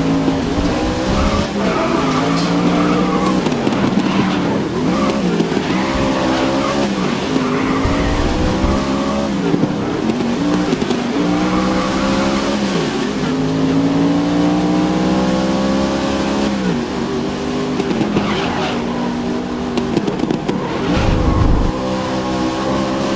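A race car engine roars loudly, rising and falling in pitch as it shifts gears.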